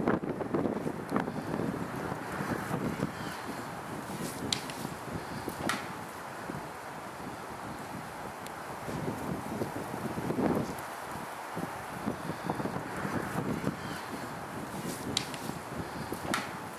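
An elk paws at loose dirt.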